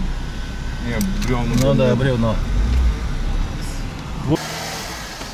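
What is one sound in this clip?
An engine hums inside a car cabin.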